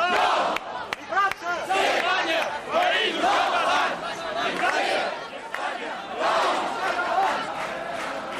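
A large crowd of young men and women chants loudly in unison outdoors.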